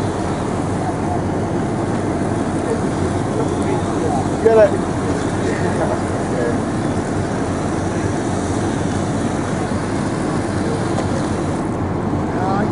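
Water sprays from a hose nozzle with a steady hiss.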